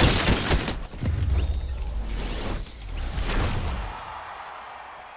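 A triumphant fanfare plays loudly.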